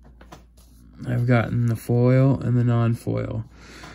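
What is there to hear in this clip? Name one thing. Playing cards rustle and slide as a hand picks them up.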